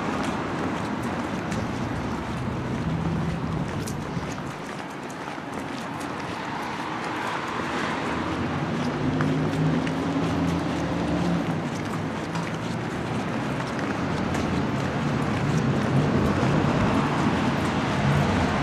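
Footsteps tap along a pavement.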